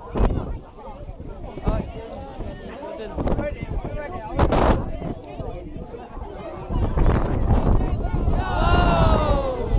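A crowd chatters and cheers.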